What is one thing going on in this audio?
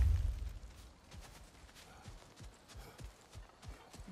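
Footsteps tread on soft grass.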